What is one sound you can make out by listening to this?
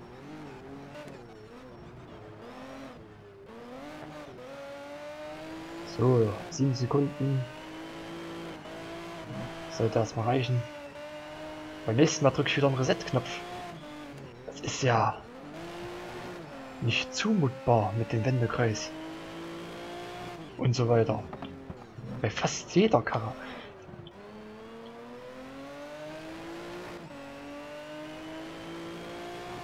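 A race car engine revs up through the gears.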